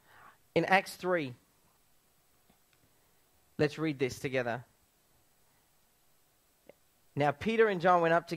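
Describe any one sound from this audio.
A young man speaks calmly through a microphone, with pauses between phrases.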